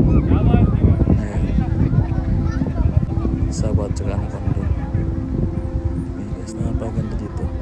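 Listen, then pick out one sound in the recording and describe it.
A crowd of people chatter at a distance.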